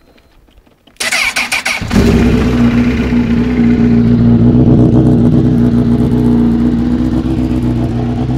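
A motorcycle engine starts up and idles loudly and steadily close by.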